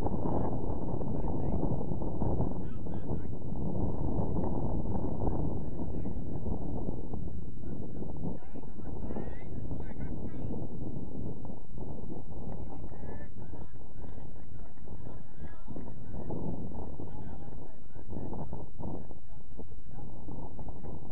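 Wind blows hard across a microphone outdoors.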